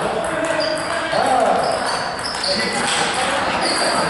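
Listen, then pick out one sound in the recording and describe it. A ping pong ball clicks back and forth on a table.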